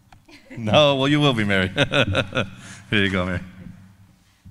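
A man speaks into a microphone over a loudspeaker in a large echoing hall.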